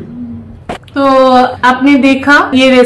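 A woman talks with animation through an online call.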